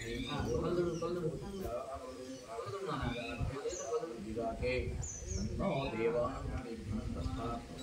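A man chants prayers steadily nearby.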